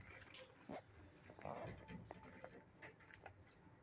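A dog shifts on a soft blanket with a faint rustle.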